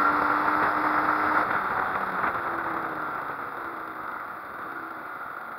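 A motorcycle engine hums and quiets as the motorcycle slows down.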